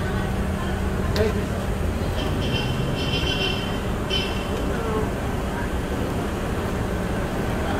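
Equipment knocks and rustles as it is loaded into the back of a car.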